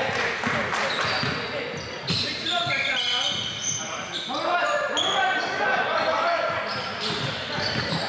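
Players call out to each other with loud, echoing voices.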